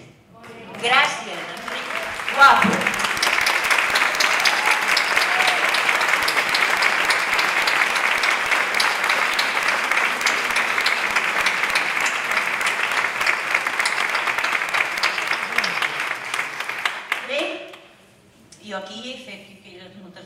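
An elderly woman speaks into a microphone in a large hall.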